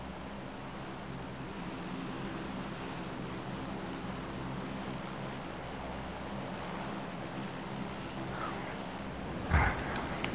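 Propeller plane engines drone steadily.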